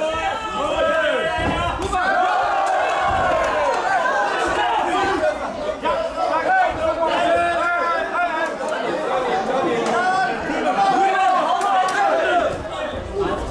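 A crowd of men shouts and cheers in an echoing hall.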